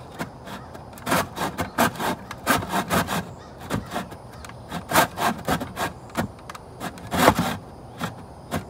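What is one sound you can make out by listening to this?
A hand saw cuts back and forth through wood in quick strokes.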